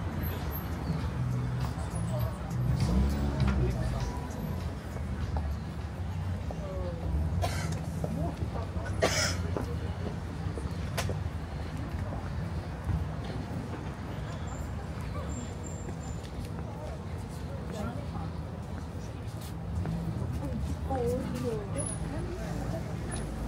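A steady hum of city traffic sounds outdoors.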